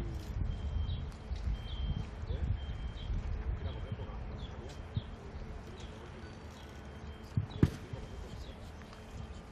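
Wind rumbles softly outdoors.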